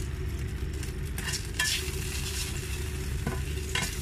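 A spatula scrapes a frying pan.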